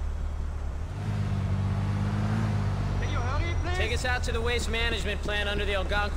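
A car engine hums and revs as the car drives off.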